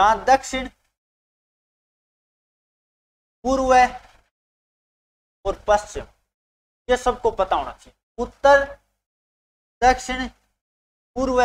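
A man speaks in short bursts with animation, close to a microphone.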